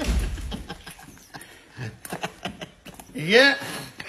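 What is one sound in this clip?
A middle-aged man laughs and groans up close.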